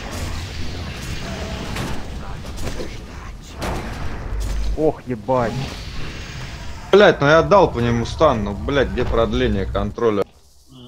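Fiery spell blasts roar and crackle.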